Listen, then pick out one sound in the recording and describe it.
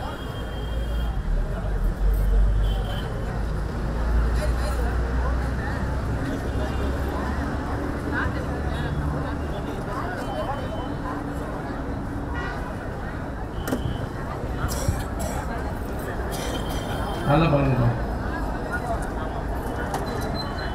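An elderly man speaks with animation through a microphone and loudspeakers, outdoors.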